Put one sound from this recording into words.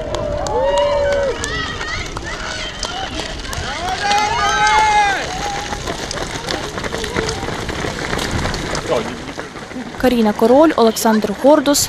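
Many running feet patter on pavement.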